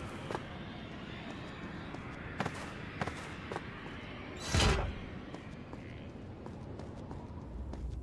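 Footsteps patter quickly on stone.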